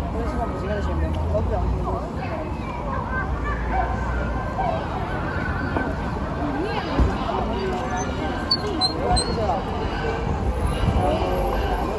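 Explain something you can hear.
Bicycles roll past over pavement.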